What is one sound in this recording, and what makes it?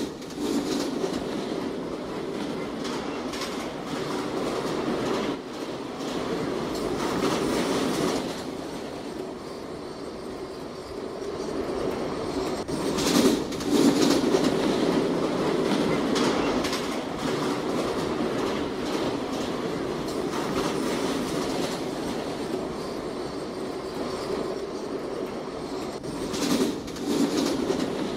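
A subway train rumbles and rattles steadily along the tracks.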